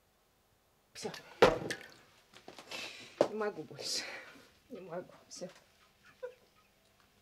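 A middle-aged woman sobs and gasps.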